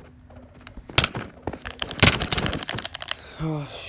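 Sword blows land with sharp thuds in a video game.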